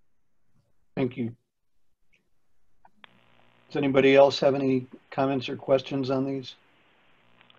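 A middle-aged man speaks briefly over an online call.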